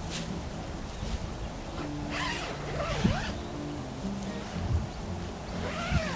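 Tent fabric rustles as it is pulled.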